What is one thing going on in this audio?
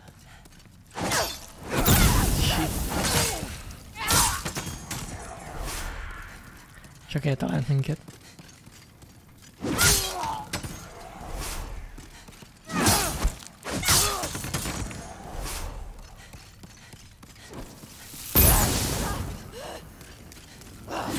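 Sword blows and clashing metal ring out in bursts.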